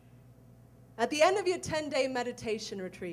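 A young woman speaks expressively into a microphone.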